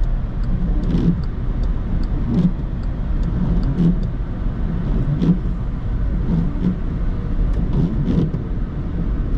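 Windscreen wipers thump back and forth in a regular rhythm.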